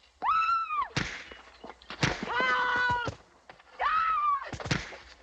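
Heavy punches land with dull thuds during a fistfight.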